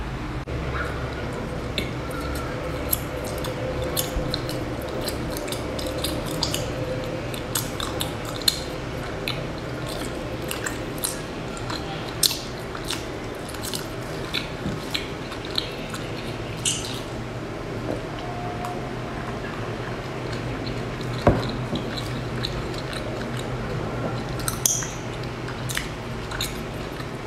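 A young woman chews crunchy pastries close to a microphone, with wet crackling bites.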